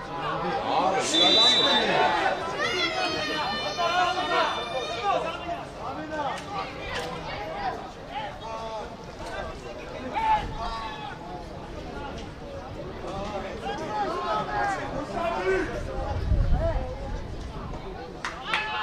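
Men shout and call out to each other across an open outdoor field.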